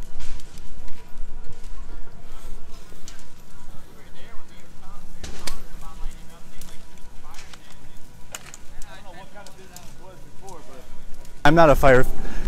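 A building fire crackles and pops.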